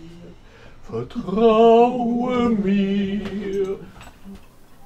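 An older man sings loudly with a wavering voice.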